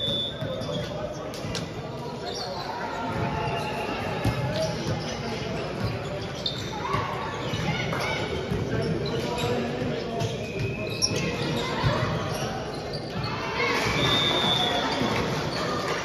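A crowd of players and spectators chatters in a large echoing hall.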